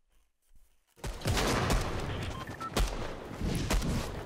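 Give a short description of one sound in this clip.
Loud game sound effects rush and roar.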